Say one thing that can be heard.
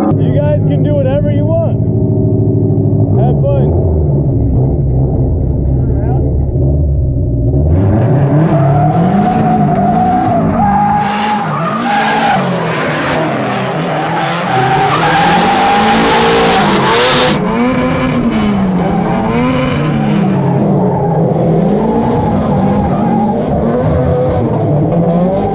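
A car engine roars and revs up and down loudly.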